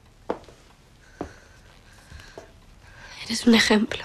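A young woman speaks in a pleading voice.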